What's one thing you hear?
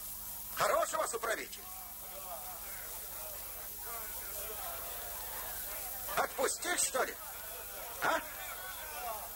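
A man speaks loudly outdoors.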